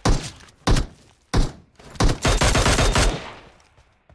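Gunshots ring out in loud, rapid bursts.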